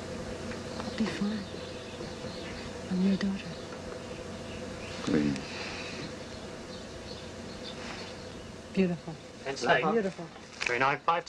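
An elderly man speaks calmly in short phrases nearby.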